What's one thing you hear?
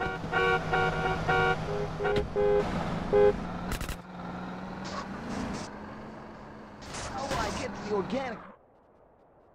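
Music plays from a car radio.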